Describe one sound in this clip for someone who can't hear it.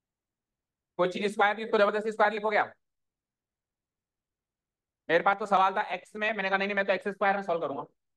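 A man explains calmly through a microphone.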